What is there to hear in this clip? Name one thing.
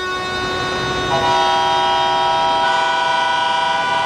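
A car horn honks.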